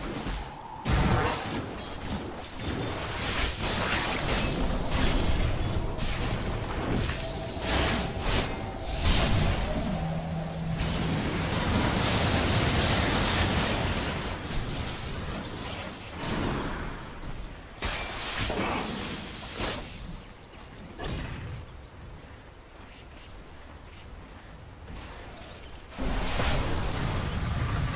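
Spell blasts and clashing strikes crackle and boom in a game battle.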